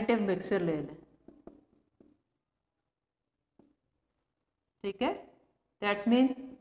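A woman speaks calmly and clearly, as if teaching.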